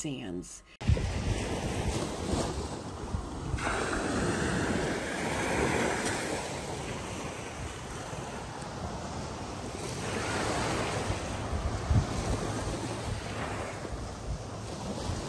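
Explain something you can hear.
Small waves wash up and break on a sandy shore.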